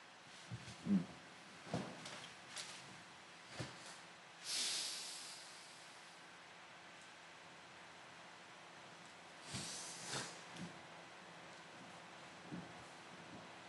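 A man murmurs briefly close to a microphone.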